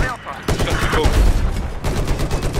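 A loud explosion booms close by.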